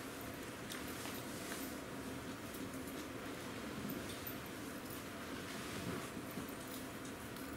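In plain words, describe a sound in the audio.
Small objects softly clink and rustle on a hard floor.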